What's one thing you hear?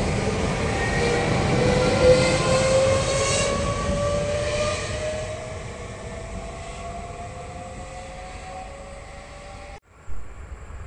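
Electric traction motors whine, rising in pitch as an electric train accelerates.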